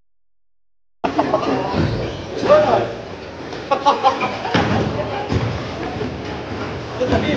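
A young woman laughs and cheers.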